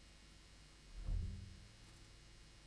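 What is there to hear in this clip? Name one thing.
An upright double bass plucks a low note.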